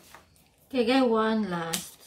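Scissors snip once.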